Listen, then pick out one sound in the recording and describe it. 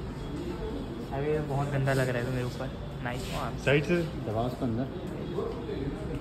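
A young man talks close by, cheerful and animated.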